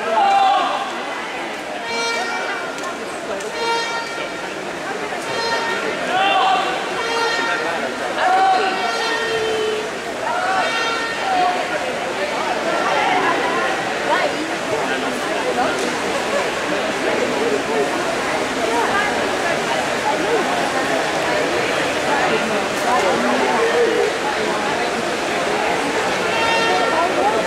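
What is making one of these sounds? A swimmer splashes steadily through the water.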